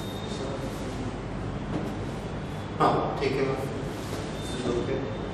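A middle-aged man speaks slowly and calmly, close by.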